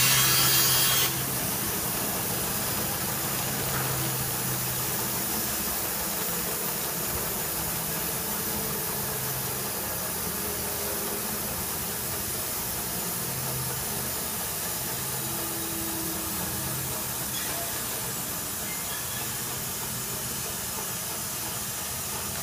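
A band saw motor hums steadily.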